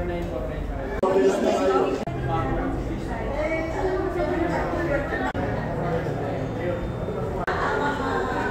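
A group of men and women chat in the background.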